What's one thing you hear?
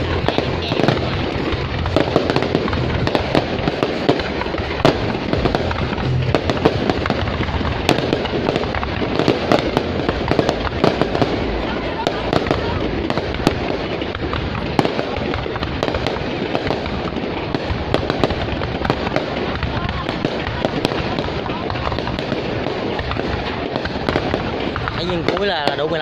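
Fireworks burst and crackle overhead, with sharp bangs.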